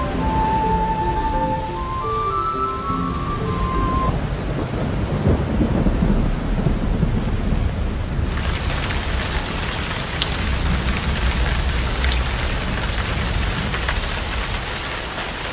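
Leaves and stalks rustle and brush close by as someone pushes through thick plants.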